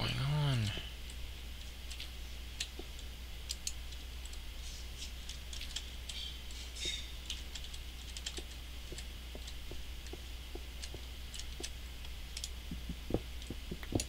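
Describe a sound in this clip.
Footsteps tap on stone at a walking pace.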